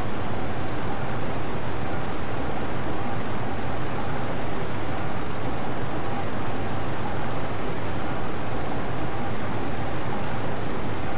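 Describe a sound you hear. Waves wash steadily against a hull.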